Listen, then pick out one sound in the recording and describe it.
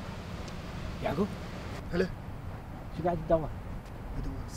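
A young man speaks tensely, close by.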